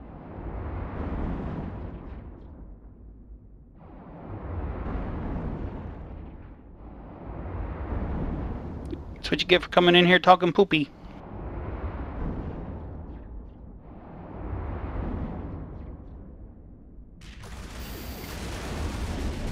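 Laser weapons fire in slow, swelling bursts.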